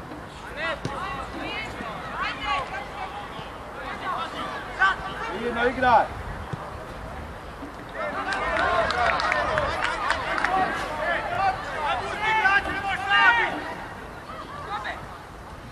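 Boys shout and call to each other outdoors on an open field.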